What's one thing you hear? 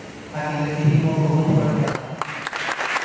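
A man sings a held note through a microphone in a reverberant hall.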